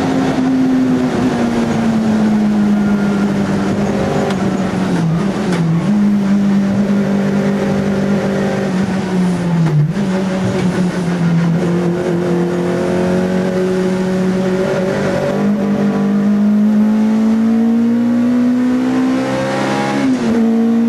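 A race car engine drops and climbs in pitch as the driver shifts gears.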